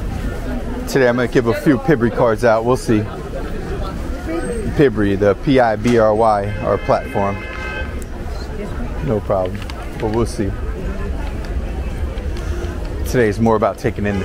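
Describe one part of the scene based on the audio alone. Men and women talk nearby on a busy outdoor street.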